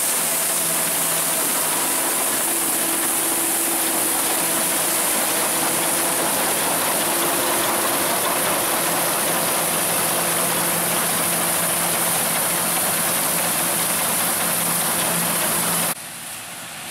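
An old combine harvester's engine rumbles and clatters loudly up close.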